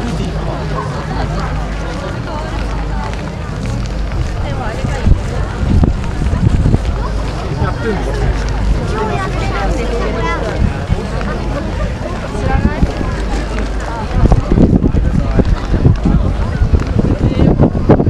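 A large crowd chatters outdoors, with many men and women talking at once.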